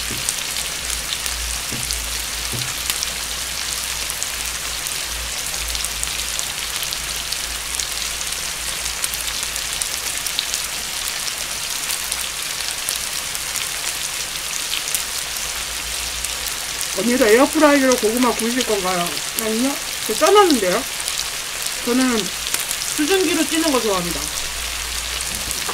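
Meat sizzles steadily on a hot griddle.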